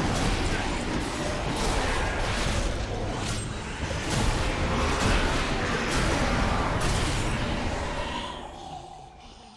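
Weapon blows and spell effects clash loudly in a game battle.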